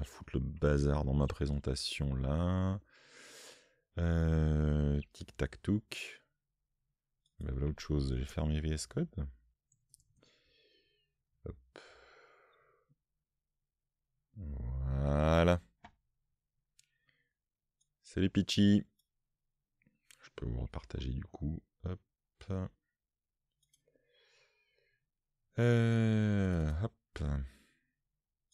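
A middle-aged man talks calmly and closely into a microphone, with pauses.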